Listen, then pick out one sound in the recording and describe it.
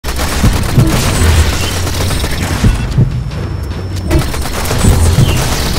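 Gunfire rings out in rapid bursts.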